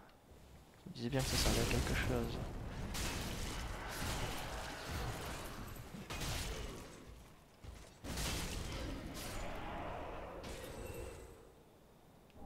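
Metal weapons clash and strike armour.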